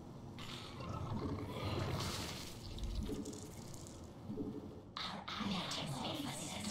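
Alien creatures chitter and squelch in a game's battle sounds.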